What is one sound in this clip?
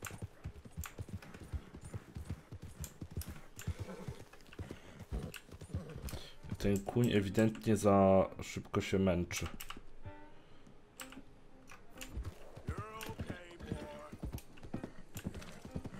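A horse's hooves thud in a steady gallop.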